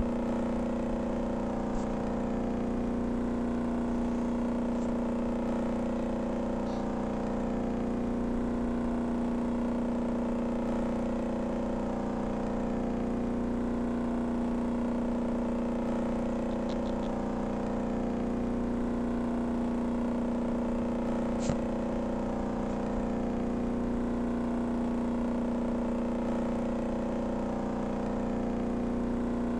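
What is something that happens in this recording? A motorboat engine drones steadily at high speed.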